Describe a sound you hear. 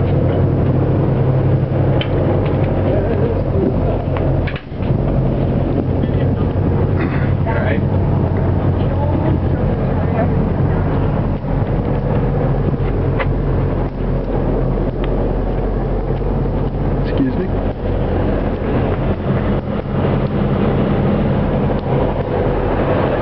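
Wind blusters loudly against the microphone outdoors.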